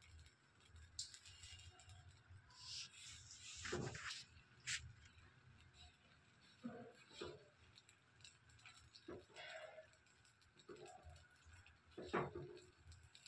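A ladle scrapes softly across a hot pan.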